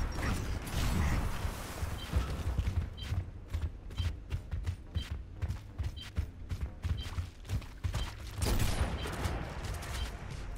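Heavy boots thud quickly on a hard floor.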